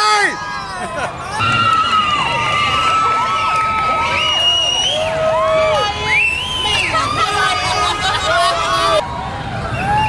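A large outdoor crowd cheers and whistles.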